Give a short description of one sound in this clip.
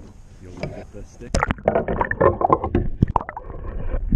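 A fish splashes into water close by.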